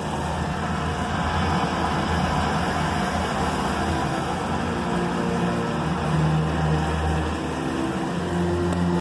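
Aquarium pumps hum steadily with bubbling water.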